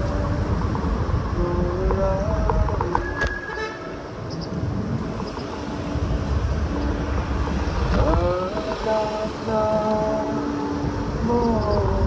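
Wind buffets loudly past a moving rider.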